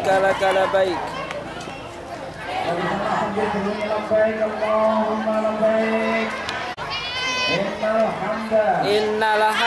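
A crowd of children and adults chants together outdoors.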